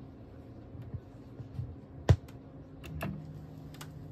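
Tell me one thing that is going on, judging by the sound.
A stylus drops onto a vinyl record with a thump and crackle.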